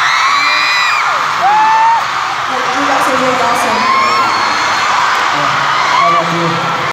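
Young women shriek in long, high-pitched cries.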